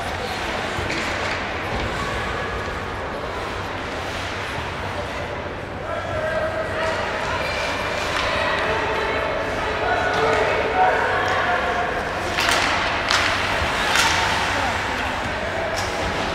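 Spectators chatter nearby in a large echoing arena.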